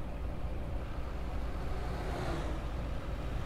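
A truck passes close by with a rushing whoosh.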